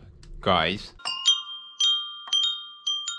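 Metal wind chimes ring.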